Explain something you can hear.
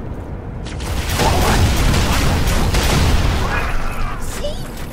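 A gun fires loud blasts.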